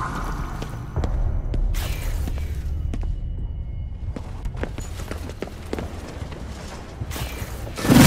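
Footsteps thud on a hard floor at a walking pace.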